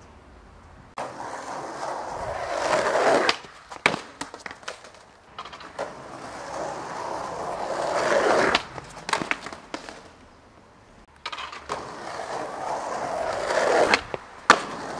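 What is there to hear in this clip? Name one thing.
Skateboard wheels roll and rumble on pavement, growing louder as the rider approaches.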